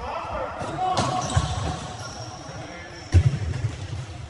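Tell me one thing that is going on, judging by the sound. A ball is kicked with sharp thuds that echo in a large hall.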